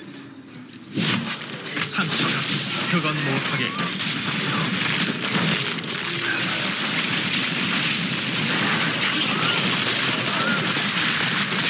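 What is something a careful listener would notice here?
Game spells explode and crackle in a dense, noisy battle.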